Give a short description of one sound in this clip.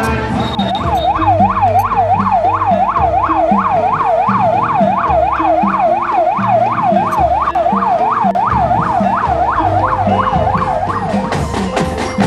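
A police siren wails up and down rapidly.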